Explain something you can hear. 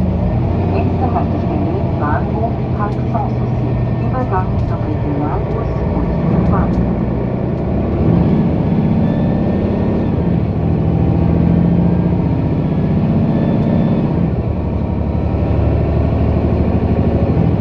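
A bus engine hums and drones steadily from inside.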